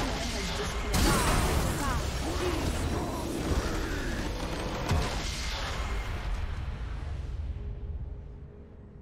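A triumphant victory fanfare swells.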